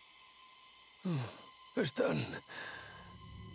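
A man calls out a name.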